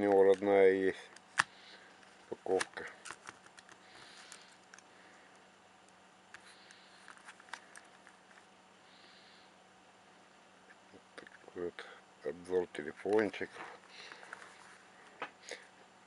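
A small plastic device rubs and knocks lightly in a hand.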